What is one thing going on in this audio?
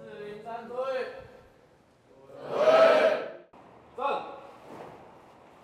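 A young man shouts commands loudly in an echoing outdoor space.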